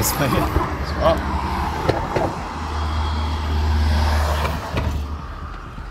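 Liquid glugs from a canister into a fuel tank.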